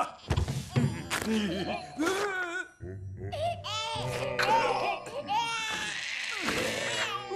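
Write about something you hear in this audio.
A man laughs loudly and harshly.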